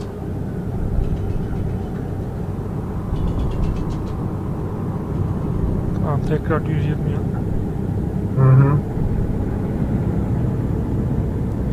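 A truck engine rumbles steadily while driving on a highway.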